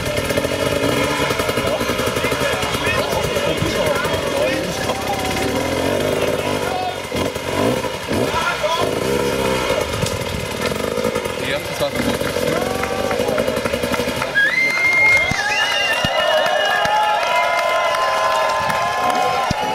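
A crowd of spectators shouts and cheers nearby.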